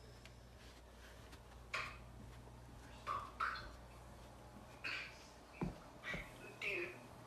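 Footsteps thud on carpeted stairs.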